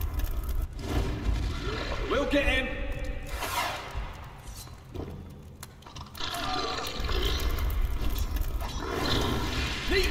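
A fireball whooshes and bursts with a roar.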